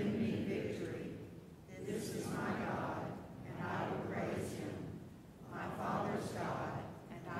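A choir sings together in a large echoing hall.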